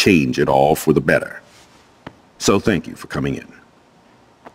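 A man speaks calmly and warmly, close by.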